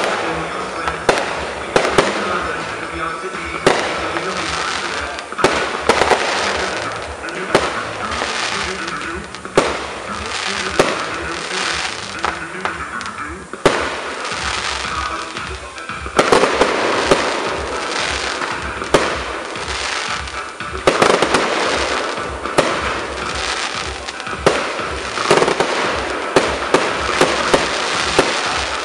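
Fireworks crackle and fizz as sparks burst and rain down.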